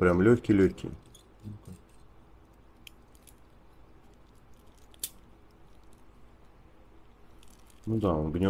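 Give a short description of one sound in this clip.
Small plastic parts click softly as they are handled.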